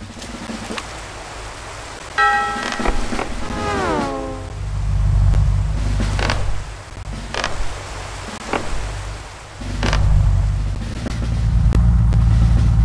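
Short blips sound as a little game character hops forward.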